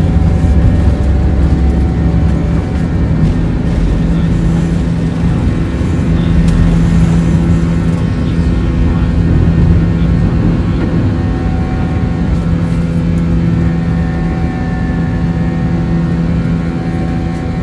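Jet engines roar steadily as an airliner takes off.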